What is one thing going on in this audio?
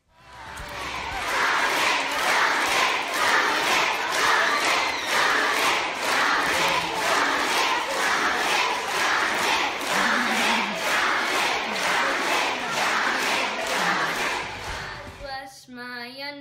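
A large crowd of children chants and cheers loudly.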